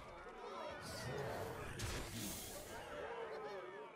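A video game plays an attack sound effect.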